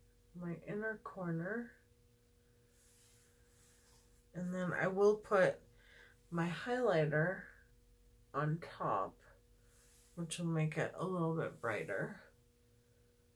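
A woman talks calmly and close by, in bursts with pauses.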